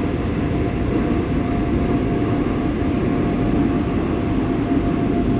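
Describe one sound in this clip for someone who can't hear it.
A subway train rumbles and hums steadily as it runs along the track.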